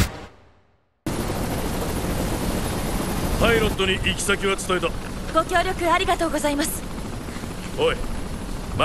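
A helicopter engine rumbles steadily.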